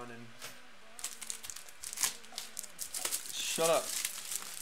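Plastic wrapping crinkles as hands handle it.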